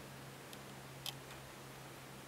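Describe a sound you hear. A laptop touchpad clicks softly.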